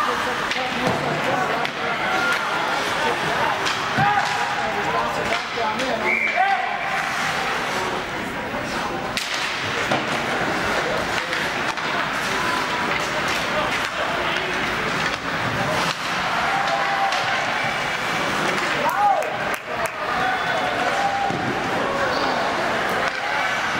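A crowd of voices chatters and shouts in a large echoing rink.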